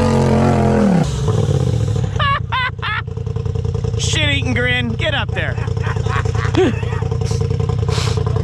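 An off-road buggy engine idles with a low, steady rumble.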